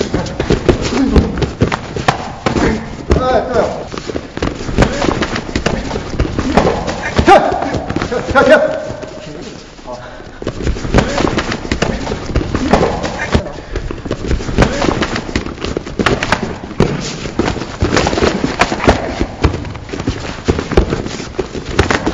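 Gloved fists thump against padded body armour.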